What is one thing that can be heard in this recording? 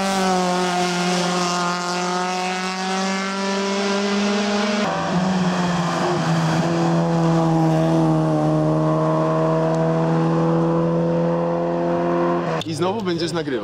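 A car engine revs hard as a car speeds past.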